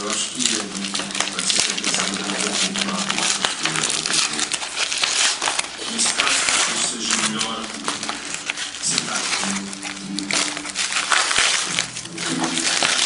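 Paper crinkles and rustles close by.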